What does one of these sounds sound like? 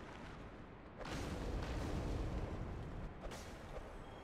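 A fireball bursts and roars into flames.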